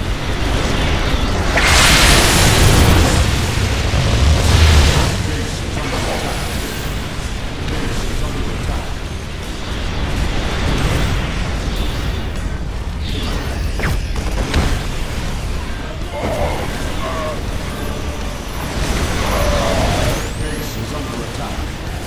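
Game battle sounds of lasers and explosions rumble and crackle throughout.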